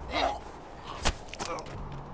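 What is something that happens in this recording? A knife strikes with a sharp thud.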